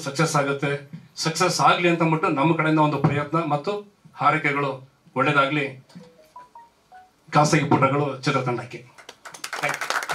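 A middle-aged man speaks with animation into a microphone, heard through loudspeakers.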